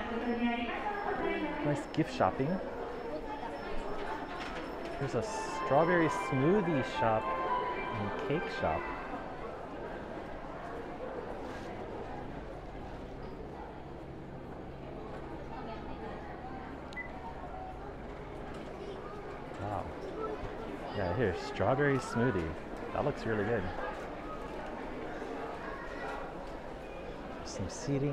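A crowd murmurs faintly in a large, echoing hall.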